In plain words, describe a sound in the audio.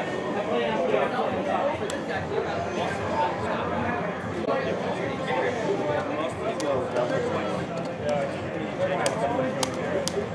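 Arcade buttons click and clack rapidly under fingers.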